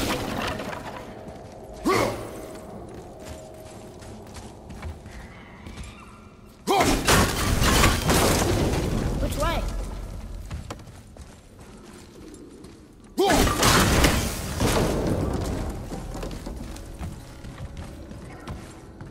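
Heavy weapon blows strike and clang in a fight.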